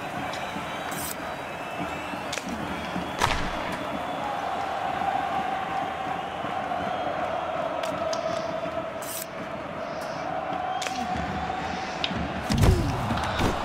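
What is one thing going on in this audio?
A hockey stick strikes a puck with a sharp clack.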